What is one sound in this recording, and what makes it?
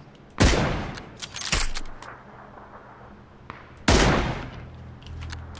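Loud rifle shots ring out with a sharp echo.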